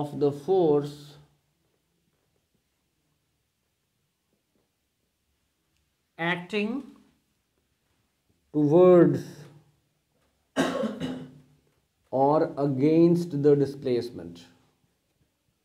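A young man speaks calmly and clearly close by, pausing between phrases.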